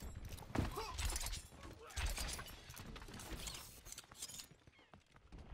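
A gun fires in quick, loud bursts.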